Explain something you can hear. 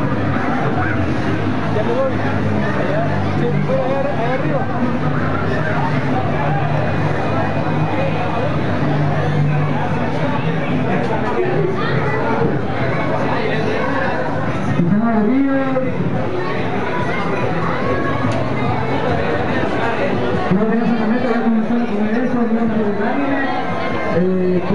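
A crowd of young people chatter all around, close by.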